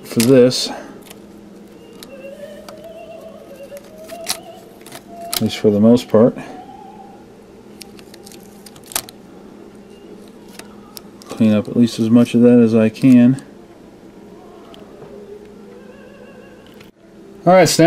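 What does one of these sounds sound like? Small metal parts click and tap as they are handled.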